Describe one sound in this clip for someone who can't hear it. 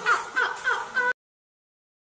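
Two men laugh close by.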